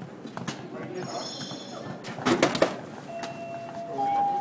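A card reader beeps sharply.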